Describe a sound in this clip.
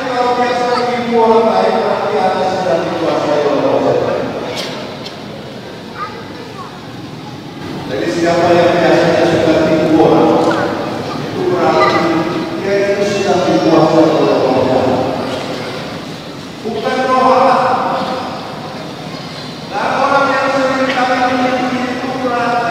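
A man chants in a slow, sustained voice over loudspeakers in a large echoing hall.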